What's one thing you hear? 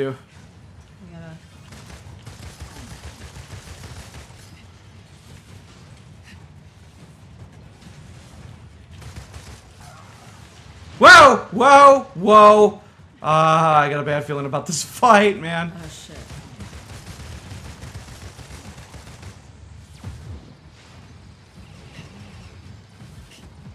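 Energy blasts crackle and boom in a fight.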